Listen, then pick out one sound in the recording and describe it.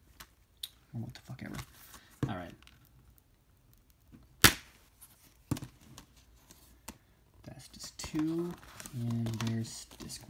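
Hands handle a plastic case with light clicks and rustles.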